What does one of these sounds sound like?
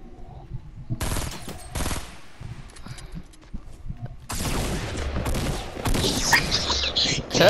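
Automatic rifle fire rattles in bursts in a video game.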